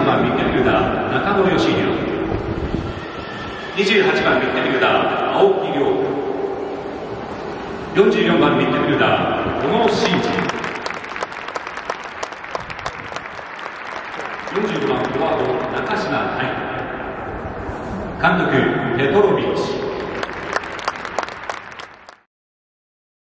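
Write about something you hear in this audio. A large crowd of fans chants in unison in an open stadium.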